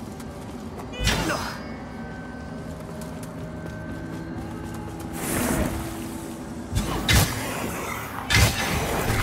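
A heavy weapon swings and strikes with a sharp impact.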